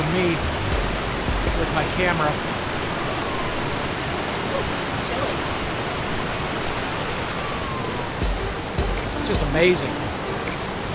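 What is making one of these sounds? A rushing creek roars steadily outdoors.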